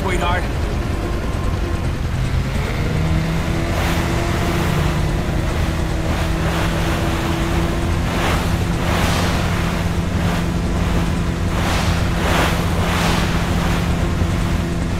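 A jet ski engine drones steadily.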